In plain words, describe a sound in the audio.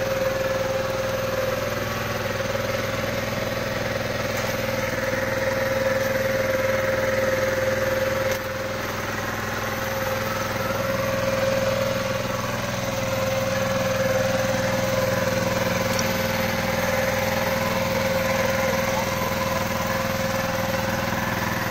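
A small petrol engine drives a water pump.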